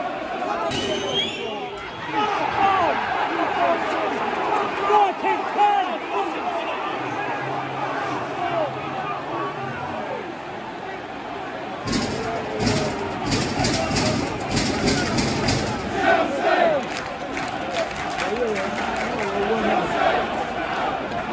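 Nearby fans shout excitedly close by.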